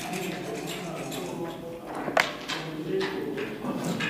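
A chess clock button clicks.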